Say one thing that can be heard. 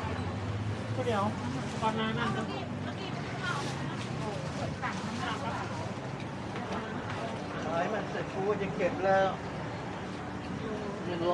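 Men and women talk nearby, casually and overlapping.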